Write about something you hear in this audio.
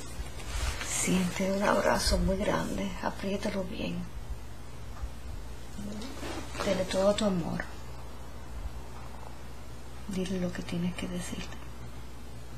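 A woman speaks close by, with pauses.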